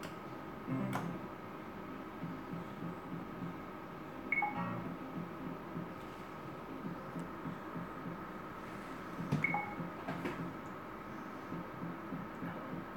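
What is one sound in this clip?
A slot machine plays a steady electronic tune.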